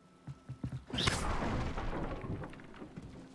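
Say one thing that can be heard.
Wooden boards crash and splinter apart.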